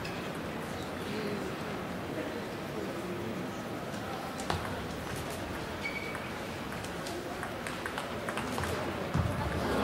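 A ball clicks back and forth in a table tennis rally.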